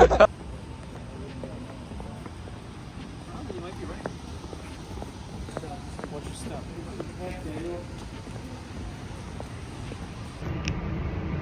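Footsteps scuff along a pavement.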